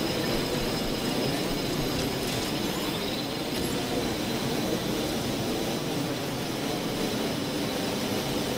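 Wind rushes steadily during a long fall through the air.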